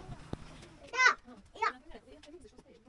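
Children's voices call out in a small room.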